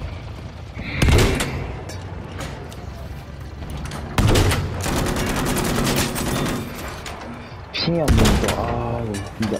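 A sniper rifle fires loud single shots that echo away.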